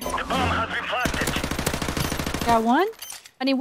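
Rapid gunshots fire in a burst.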